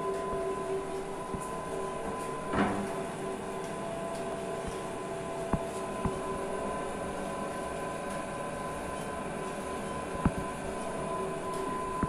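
A conveyor belt rattles as it runs.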